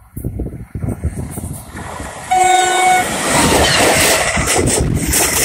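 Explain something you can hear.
A train approaches and roars past close by.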